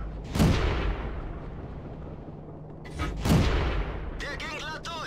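A tank cannon fires with a heavy boom that rolls away.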